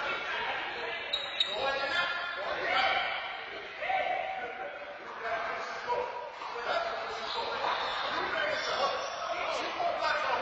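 Men talk and call out loudly in a large echoing hall.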